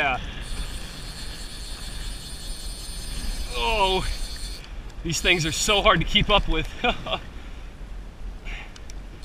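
Small waves lap against a kayak.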